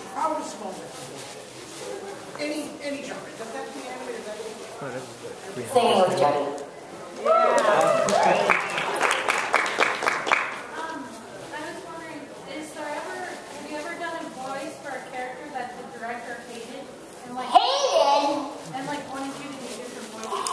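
A woman speaks into a microphone with animation, heard through loudspeakers in a large echoing hall.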